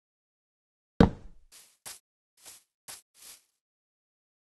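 A cat makes quick popping sounds with its mouth.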